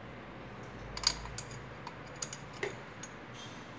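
A hand clicks and rattles small plastic engine parts.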